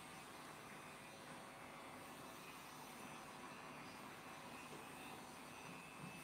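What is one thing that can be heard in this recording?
Hands rustle softly through hair.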